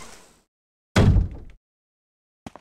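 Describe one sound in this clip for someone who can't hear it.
A heavy door slams shut with a loud thud.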